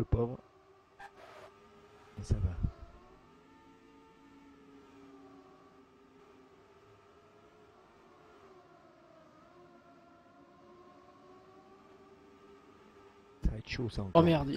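A racing car engine drones steadily.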